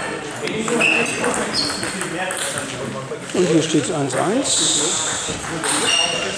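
A table tennis ball clicks back and forth off paddles and the table in an echoing hall.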